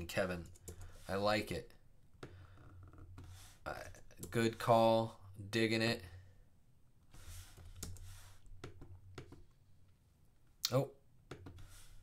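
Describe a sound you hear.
A man talks calmly and close to a microphone, with pauses.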